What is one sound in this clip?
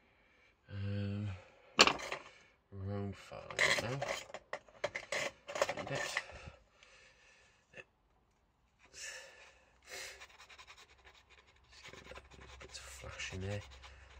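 A small tool scrapes against a hard plastic part.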